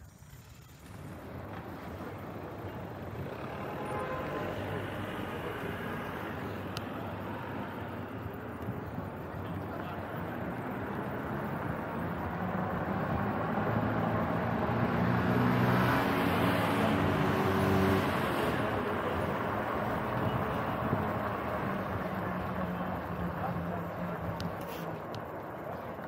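Wind rushes steadily past a moving bicycle, outdoors.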